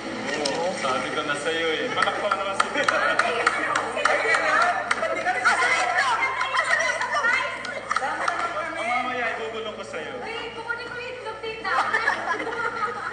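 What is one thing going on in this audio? A middle-aged woman shouts and laughs with excitement.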